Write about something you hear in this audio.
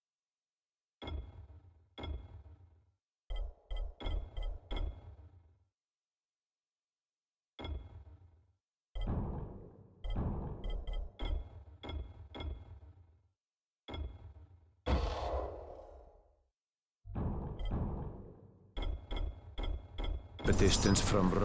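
Short electronic menu clicks tick again and again.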